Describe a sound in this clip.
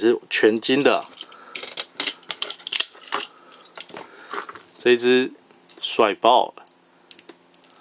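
Small plastic toy parts click and snap.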